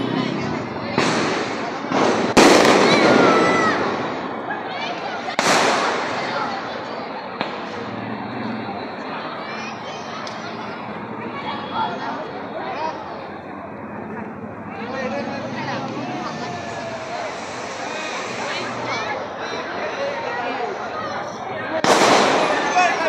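Firecrackers bang sharply.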